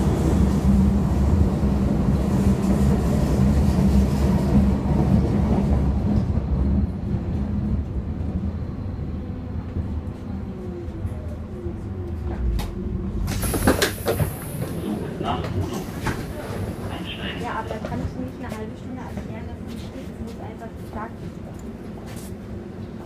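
A subway train rumbles along, loud at first and then slowing down.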